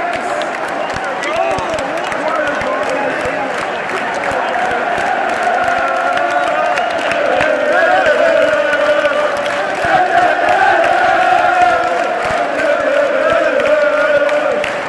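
A large stadium crowd sings and chants loudly in unison.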